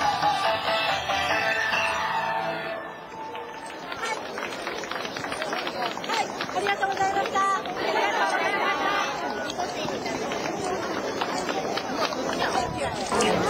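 Wooden clappers clack in rhythm.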